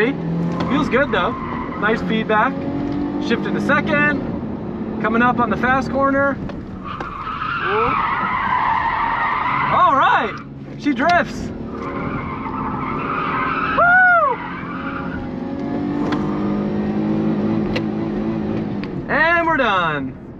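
Tyres squeal sharply again and again as the car slides through turns.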